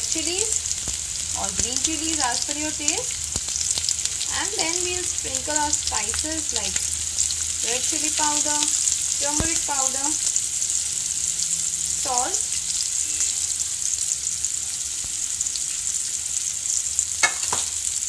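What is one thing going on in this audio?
Apple slices sizzle softly in hot oil in a frying pan.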